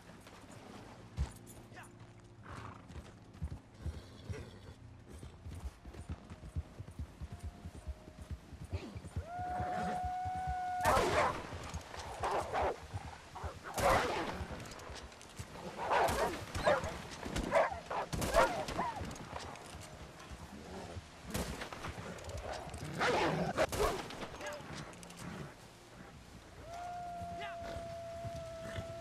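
A horse gallops through snow.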